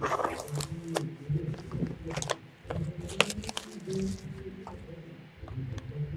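A blade scrapes and clicks against a plastic case.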